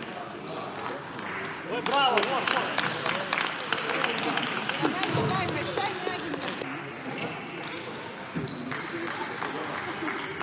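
A table tennis ball clicks back and forth between paddles and the table in a large echoing hall.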